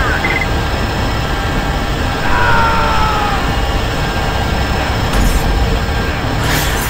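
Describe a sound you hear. Rapid gunfire rattles in a video game.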